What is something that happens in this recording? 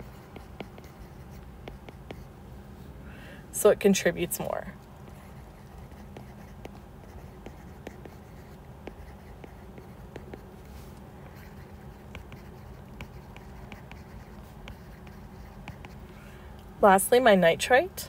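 A stylus taps and scratches lightly on a tablet.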